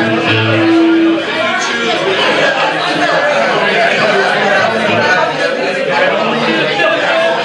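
A rock band plays loudly.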